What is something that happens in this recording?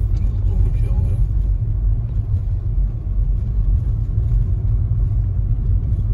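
Windshield wipers swish across the glass.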